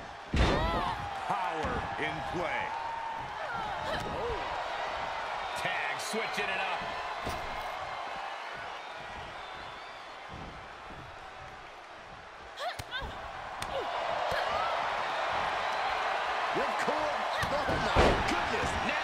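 Bodies slam heavily onto a wrestling ring mat with loud thuds.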